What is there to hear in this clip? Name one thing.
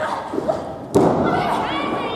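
A body slams onto the ring mat with a loud thud.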